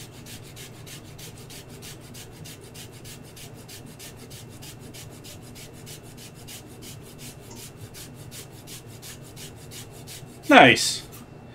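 A grater rasps in quick, even strokes.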